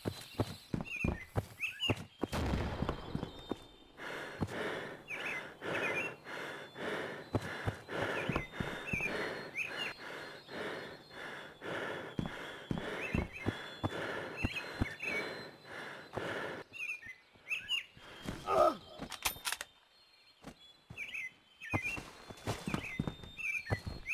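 Footsteps thud on wooden floorboards.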